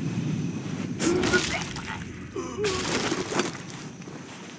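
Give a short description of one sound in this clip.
A man grunts in a brief scuffle.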